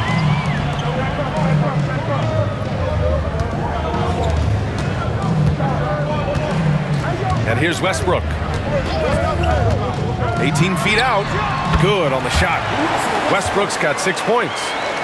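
A large arena crowd murmurs and cheers steadily.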